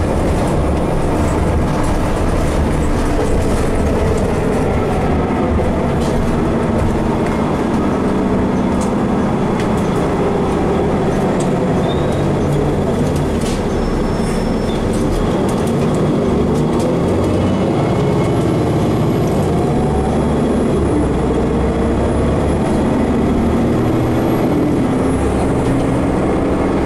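A bus engine hums and rumbles steadily from inside the bus.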